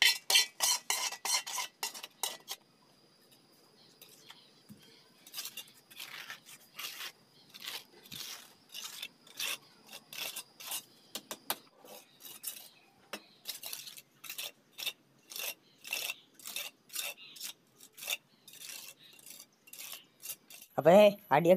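A trowel scrapes and smooths wet cement in quick, repeated strokes.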